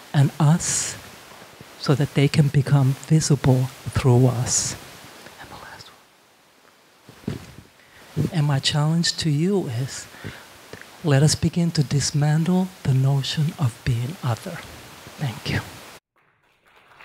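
A woman speaks into a microphone with animation, amplified through loudspeakers.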